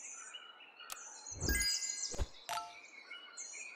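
A burst of bright game sound effects plays.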